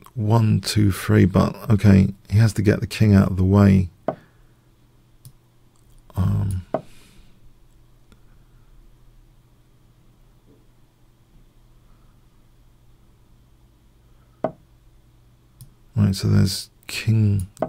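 A middle-aged man talks with animation into a close microphone, pausing between remarks.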